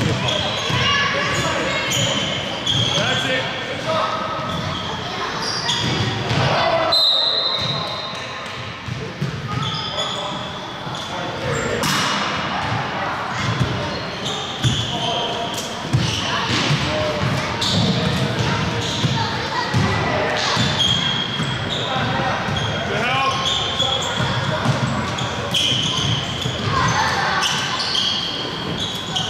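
Young children shout and call out across a large echoing hall.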